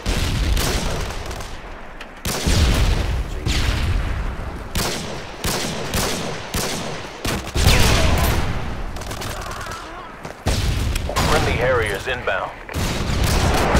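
Gunshots fire in loud bursts, one after another.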